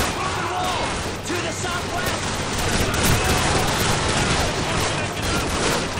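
A pistol fires close by.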